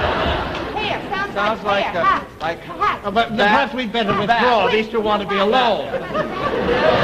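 A young woman talks back in a high, animated voice.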